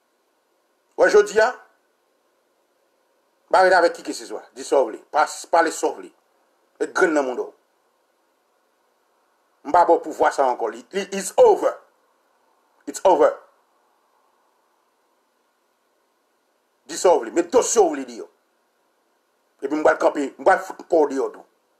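A man speaks calmly in short bursts close to a microphone.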